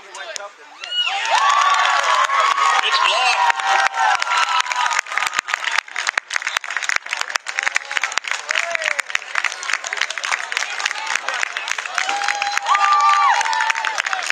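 Young players shout and cheer from across an open field.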